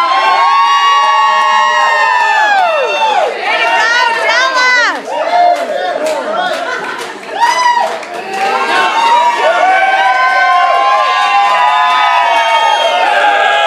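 A crowd of men and women cheers and screams loudly nearby.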